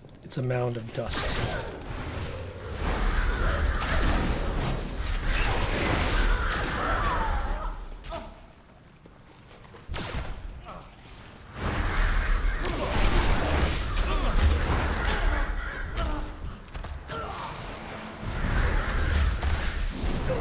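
Game spells crackle and whoosh during a fight.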